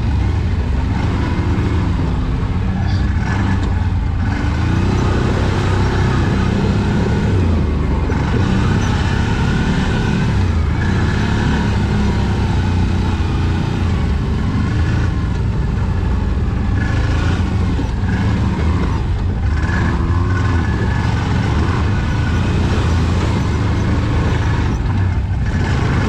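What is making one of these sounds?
An off-road vehicle engine rumbles steadily up close, revving up and down.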